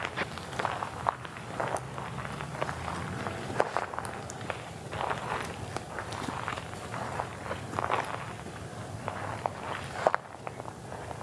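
Dry grass crunches and rustles underfoot as a person walks.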